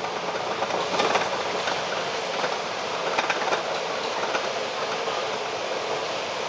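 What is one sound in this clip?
A bus engine hums and rattles close by.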